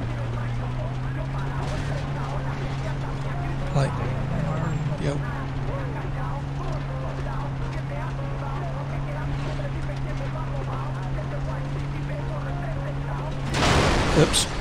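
A vehicle engine hums steadily.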